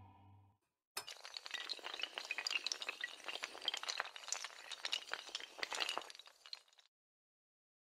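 Tiles clatter rapidly as they topple one after another.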